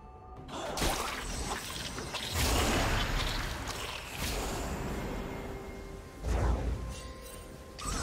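Magic spells whoosh and burst in quick bursts during a fight in a video game.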